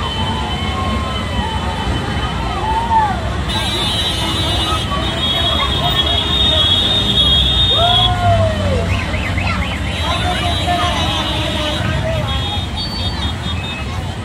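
A large crowd of men and women chatters and shouts nearby outdoors.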